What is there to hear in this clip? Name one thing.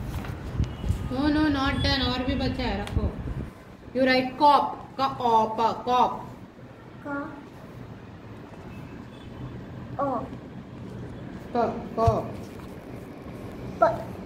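A young girl speaks close by, in a high voice.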